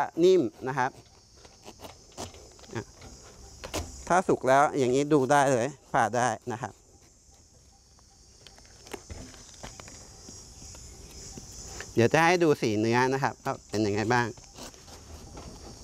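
A knife cuts into a spiky fruit's tough husk.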